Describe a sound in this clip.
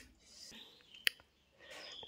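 A man crunches on food while chewing.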